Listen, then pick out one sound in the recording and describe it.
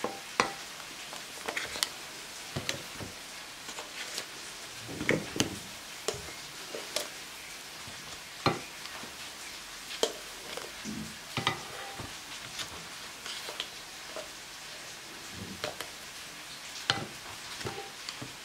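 Metal tongs click and tap against a pan and a glass dish.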